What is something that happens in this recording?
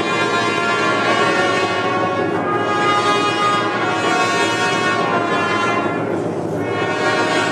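A large crowd sings together in a large echoing hall.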